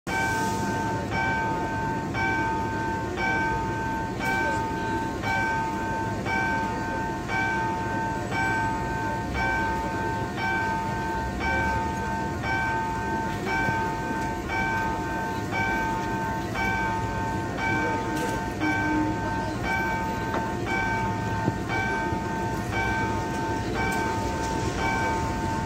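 A level crossing bell rings in a steady, fast repeating pattern.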